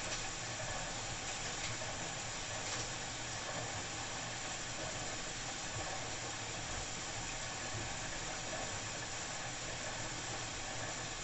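Wet laundry tumbles and swishes inside a washing machine drum.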